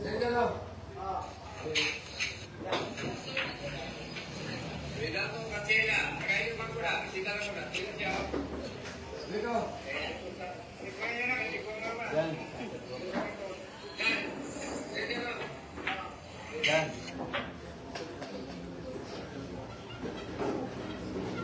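Men chatter nearby in a busy room.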